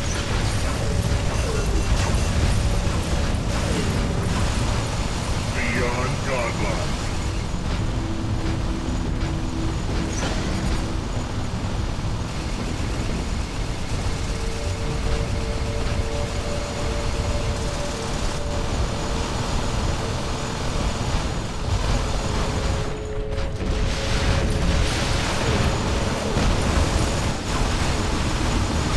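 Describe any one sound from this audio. A giant robot stomps with heavy, thudding footsteps.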